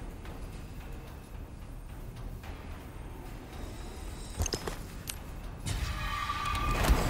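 Soft menu clicks blip now and then.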